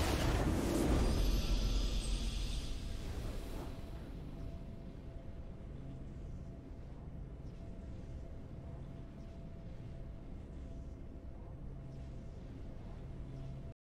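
A short triumphant fanfare plays and then a soft tune hums on.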